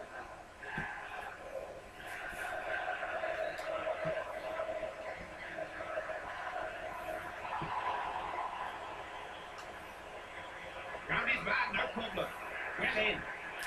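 A crowd cheers and roars steadily through a television loudspeaker, swelling louder near the end.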